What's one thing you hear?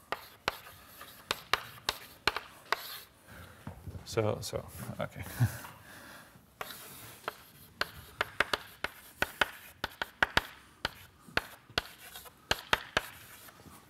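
Chalk taps and scrapes on a blackboard in quick bursts.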